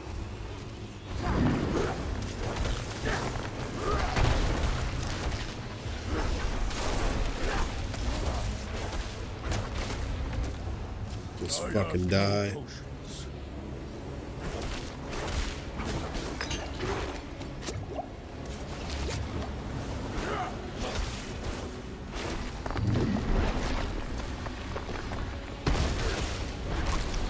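Weapons clash and slash with heavy impacts in a fight.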